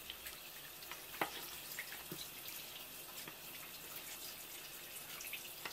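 A knife taps and scrapes on a wooden board.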